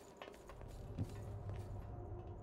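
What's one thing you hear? A heavy blade swings and strikes with a thud.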